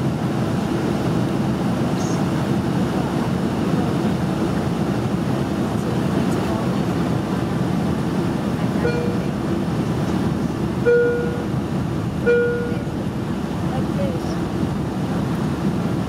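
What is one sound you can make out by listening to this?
Jet engines roar in a steady, low drone inside an airliner cabin.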